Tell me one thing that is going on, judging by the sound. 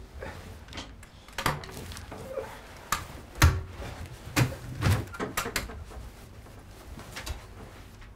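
Crutches knock and clatter on a wooden floor.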